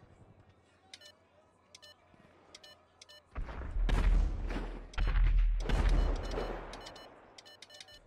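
A cash machine's menu beeps as keys are pressed.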